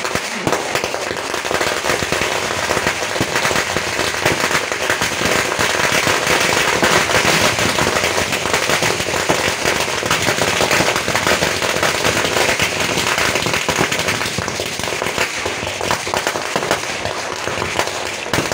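Fireworks crackle and pop in rapid bursts outdoors.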